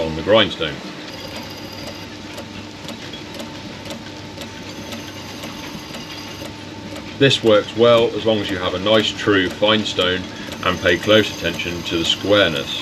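A bench grinder whirs steadily.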